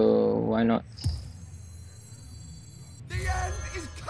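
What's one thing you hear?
Game sound effects whoosh as a card is played.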